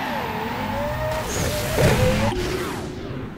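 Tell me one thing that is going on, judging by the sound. A car engine roars and whines at high speed.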